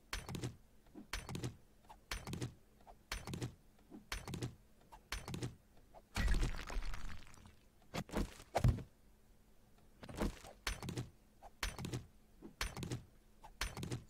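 A stone axe chops repeatedly at rock with dull, rhythmic knocks.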